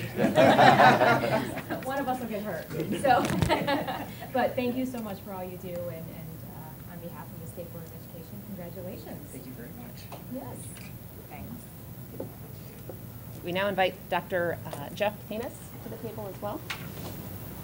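Several adults talk, heard through a room microphone.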